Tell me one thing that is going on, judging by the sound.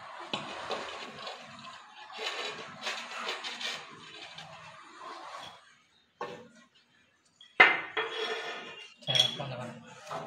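A ceramic tile scrapes and knocks against a rough concrete step.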